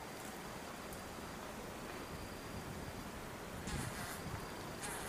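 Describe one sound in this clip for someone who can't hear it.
Dry straw rustles and crackles as young chimpanzees roll and tumble on the ground.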